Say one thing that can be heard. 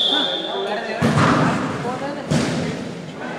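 A ball thuds off a player's foot on the court.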